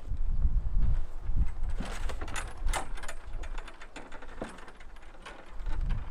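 A wooden swing creaks.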